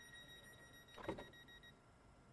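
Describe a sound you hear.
Train doors slide shut with a thud.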